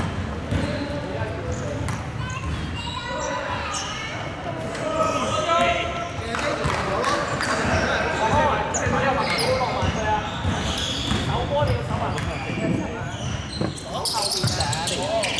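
Young men talk and call out across a large echoing gym.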